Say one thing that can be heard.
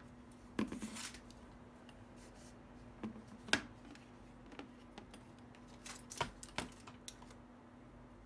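Plastic and cables rustle and knock close by.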